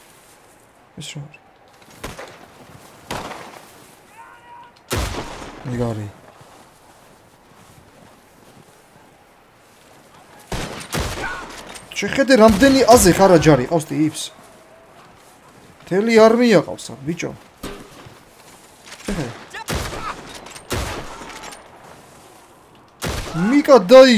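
Rifle shots crack one after another.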